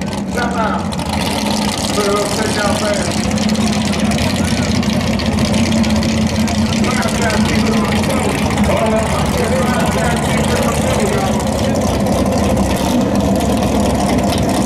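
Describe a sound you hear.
A big race car engine idles nearby with a deep, lumpy rumble.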